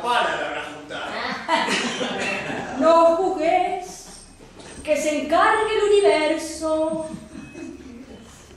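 A woman speaks dramatically in a sing-song voice, with her voice rising and falling.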